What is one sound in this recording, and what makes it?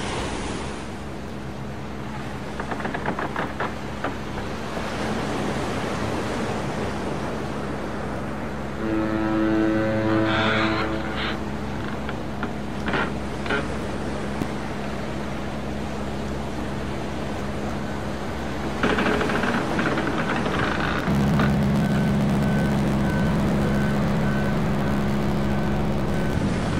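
A motorcycle engine hums steadily as the bike rides along.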